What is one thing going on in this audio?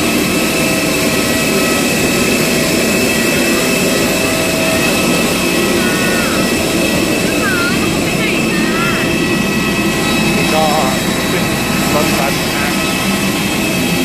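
A bus engine idles with a loud, steady rumble.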